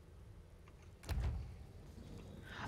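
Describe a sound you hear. Metal elevator doors slide open with a thud.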